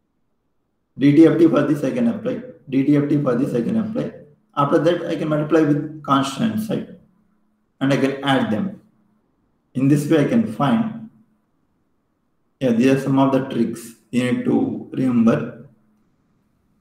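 A young man explains calmly through a microphone in an online call.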